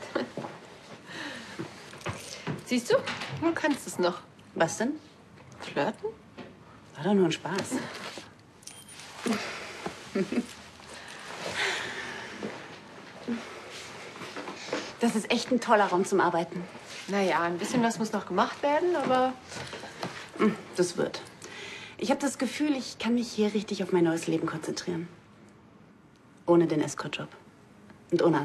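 A young woman speaks calmly and cheerfully, close by.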